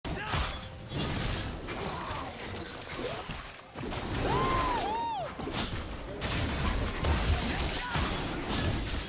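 Game characters clash with spell effects and hits.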